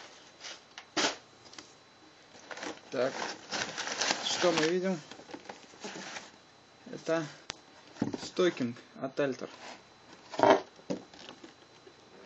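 Cardboard boxes scrape and knock as they are moved.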